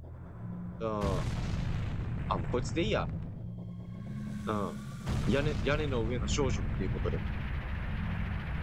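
A volcano rumbles with a deep, steady roar.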